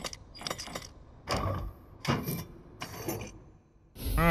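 A combination lock's dials click and clunk as they turn.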